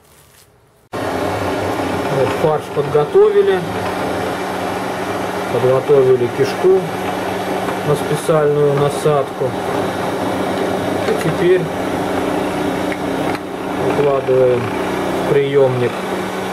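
An electric meat grinder hums as it runs.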